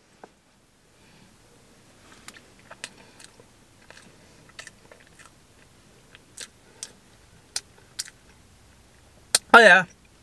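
A young man chews food with soft crunches.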